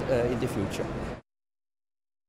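A middle-aged man speaks calmly and close up.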